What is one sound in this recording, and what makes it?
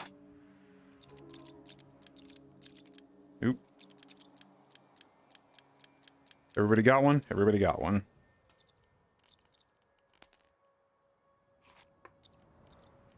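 Small metal cartridges clink and click against each other.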